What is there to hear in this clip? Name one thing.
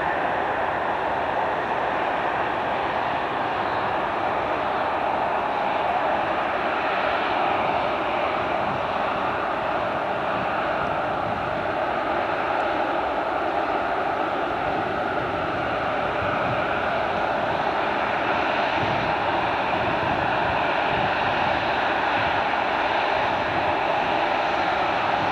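A large jet airliner's engines roar loudly and steadily as it taxis close by.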